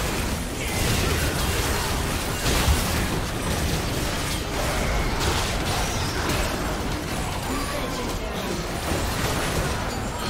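Game spell effects whoosh and crackle in a busy battle.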